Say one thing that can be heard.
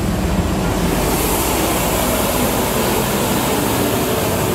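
The brushes of a street sweeper hiss and whir on the road.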